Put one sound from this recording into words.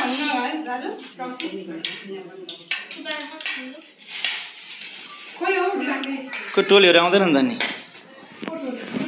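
Women and children chatter nearby.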